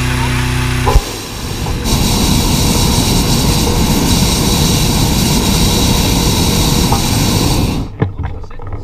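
A gas burner roars loudly overhead.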